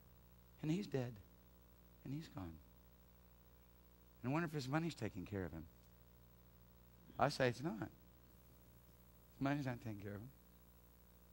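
A middle-aged man speaks calmly into a headset microphone, in short phrases with pauses.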